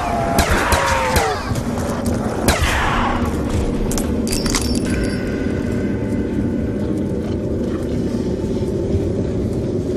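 Pistol shots fire in quick bursts.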